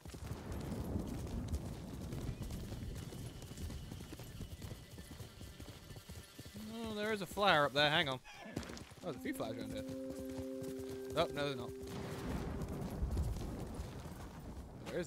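Horse hooves thud on grass at a gallop.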